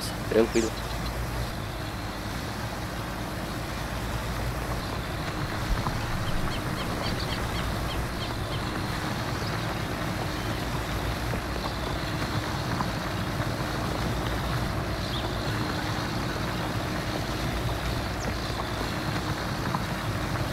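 A tractor engine rumbles steadily as it pulls through a field.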